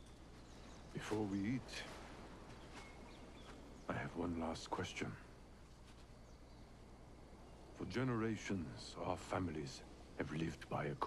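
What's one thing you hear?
A man speaks calmly and gravely, close by.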